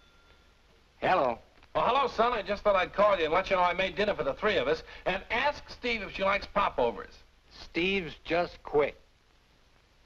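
A man talks on a telephone.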